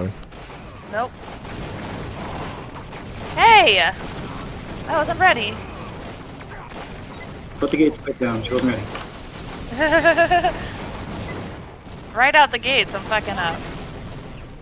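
A gun fires in rapid zapping bursts.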